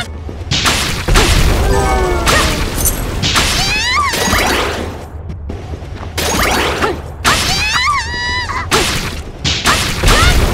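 Swords slash and whoosh in quick bursts.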